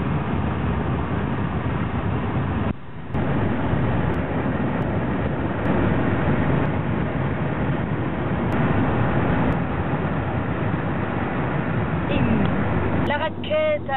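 A vehicle engine and road noise rumble steadily from inside.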